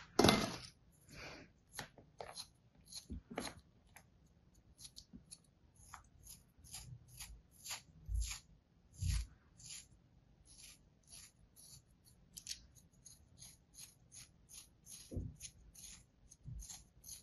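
A scraping tool scratches crisply at a block of firm sand, over and over.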